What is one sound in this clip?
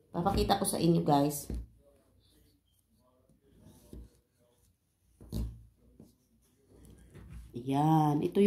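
A knife cuts through soft cake.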